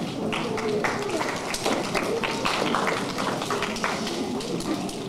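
A group of children clap their hands.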